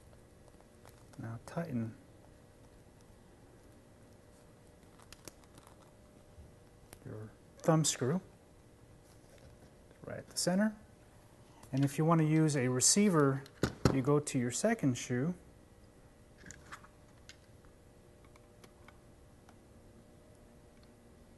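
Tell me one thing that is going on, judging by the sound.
Plastic parts click softly.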